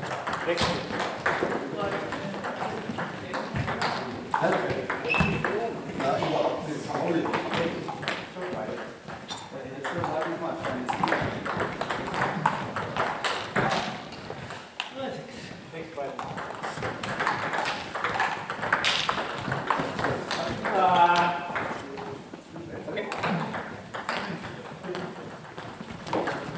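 Table tennis balls click and bounce on tables in a large echoing hall.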